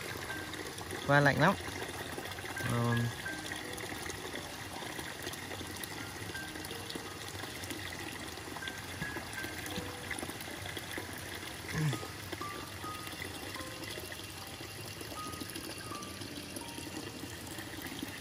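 Water trickles from a pipe into a bucket.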